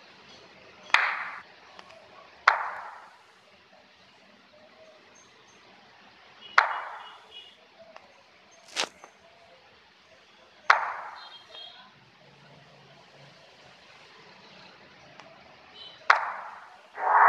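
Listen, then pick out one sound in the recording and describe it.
Short game menu clicks sound now and then.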